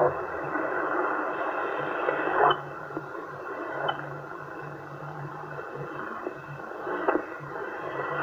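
A radio receiver hisses with loud static as its channels are tuned.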